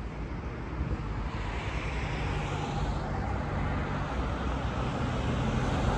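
Cars drive past on a nearby road with a rising and fading whoosh.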